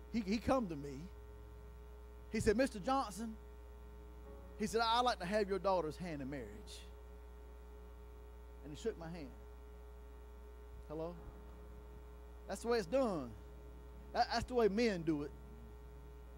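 A middle-aged man speaks with animation through a microphone, with pauses between phrases.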